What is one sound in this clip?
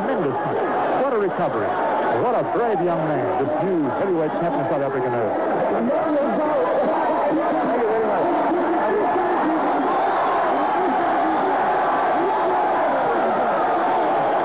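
A large crowd cheers and roars loudly in a big echoing hall.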